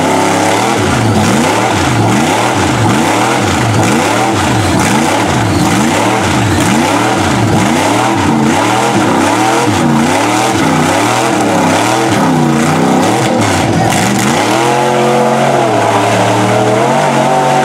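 A big truck engine roars and revs up and down over and over.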